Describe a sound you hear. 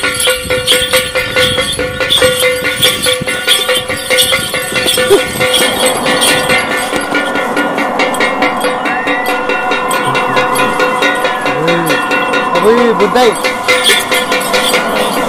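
A frame drum is beaten in a fast, steady rhythm.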